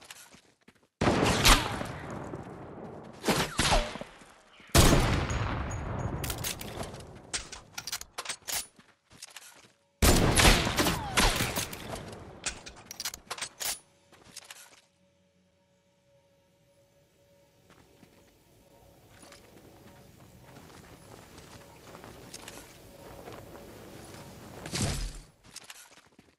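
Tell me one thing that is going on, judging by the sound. A rifle fires loud, sharp shots that ring out and fade.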